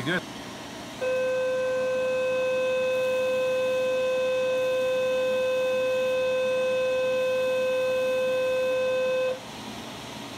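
An electric device gives a steady high-pitched whine.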